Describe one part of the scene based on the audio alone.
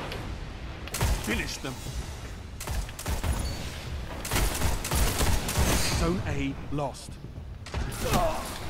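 A sniper rifle fires loud, sharp shots.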